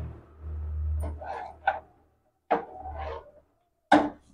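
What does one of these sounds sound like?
A spoon stirs and scrapes in a metal pot.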